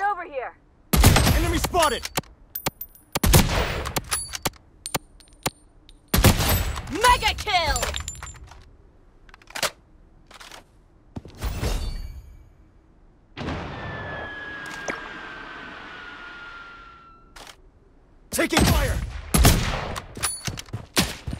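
A sniper rifle fires loud, booming shots that ring out and fade.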